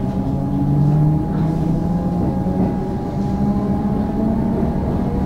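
A train's motor hums and whines steadily from inside a carriage.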